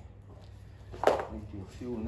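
Metal pliers clatter on a rubber mat.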